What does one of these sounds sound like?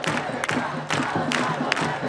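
A man shouts a chant close by.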